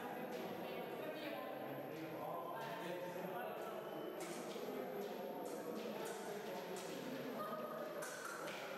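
Many people chatter in the background of an echoing hall.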